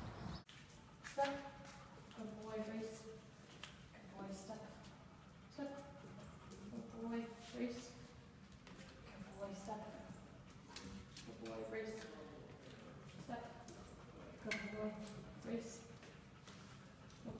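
A young woman speaks calmly to a dog nearby.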